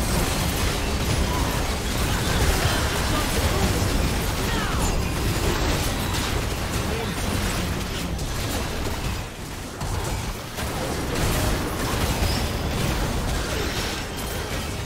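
Game spell effects and attacks clash and burst rapidly.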